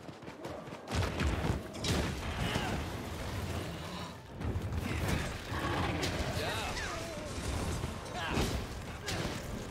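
A large beast roars and growls.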